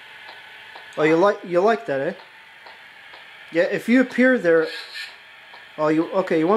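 A young man talks with animation, heard through a phone's small speaker on a call.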